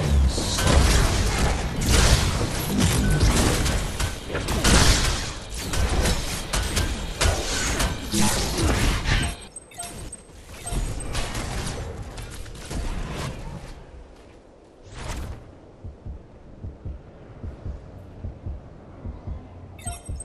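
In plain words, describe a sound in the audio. Footsteps run quickly over stone and grass.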